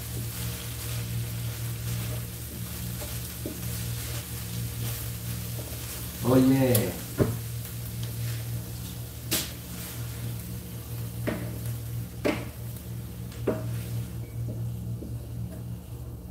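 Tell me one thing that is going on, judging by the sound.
A wooden spatula scrapes and knocks against a pan.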